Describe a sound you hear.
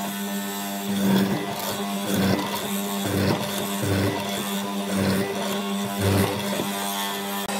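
A mortising chisel thumps and chops into wood.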